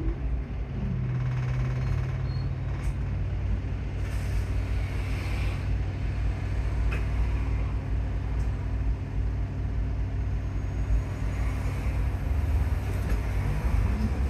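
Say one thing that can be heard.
A bus engine idles with a steady low drone.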